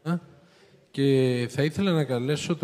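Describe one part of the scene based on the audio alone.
A man speaks with animation into a handheld microphone over loudspeakers.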